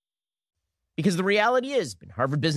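A man speaks rapidly and emphatically, heard as a playback.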